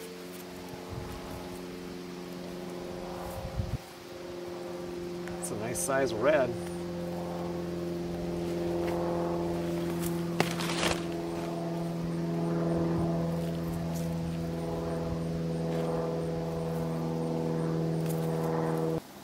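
Dry plants rustle as a man digs by hand in the soil.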